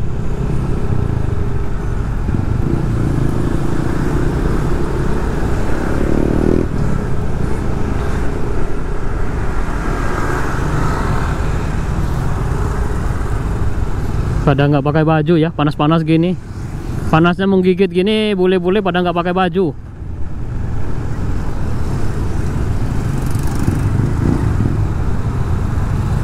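Motorbike engines hum and rumble close by.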